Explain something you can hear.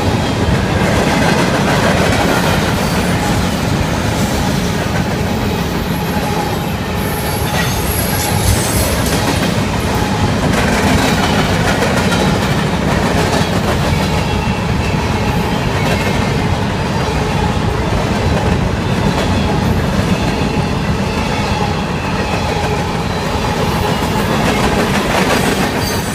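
A long freight train rumbles past close by, its wheels clattering on the rails.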